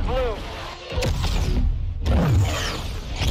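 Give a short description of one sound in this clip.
A powerful energy beam blasts with a rushing roar.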